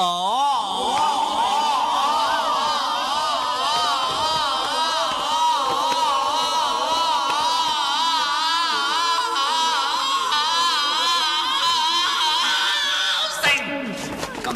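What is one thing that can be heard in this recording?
A young man holds a long, loud, wavering sung note.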